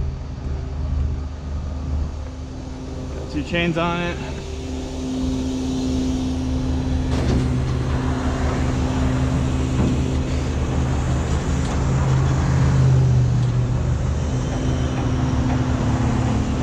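Tyres roar on the road.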